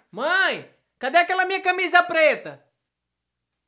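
A man speaks in a high, put-on voice with animation.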